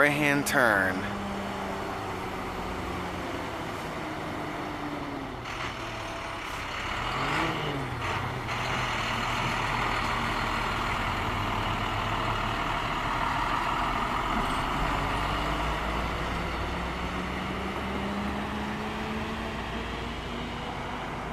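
A truck engine rumbles as the truck approaches, passes close by and drives away.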